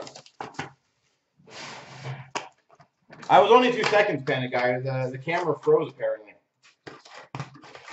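A cardboard box slides and bumps as hands handle it.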